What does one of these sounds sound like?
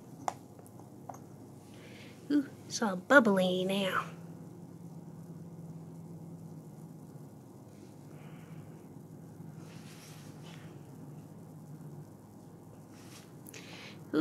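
Foam fizzes softly as it bubbles up out of a test tube.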